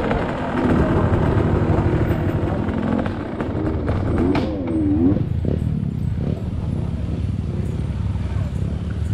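A dirt bike engine rumbles and putters close by.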